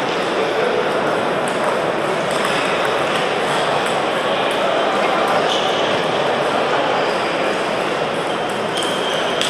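A crowd of players chatters throughout the hall.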